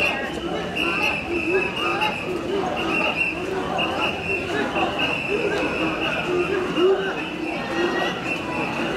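A crowd of men chants in rhythm outdoors.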